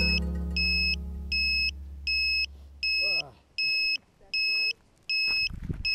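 An electronic device beeps in a steady, even rhythm.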